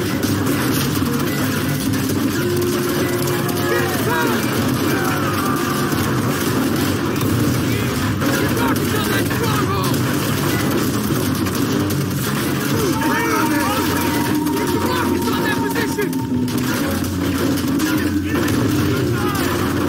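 Gunfire crackles and booms throughout a battle.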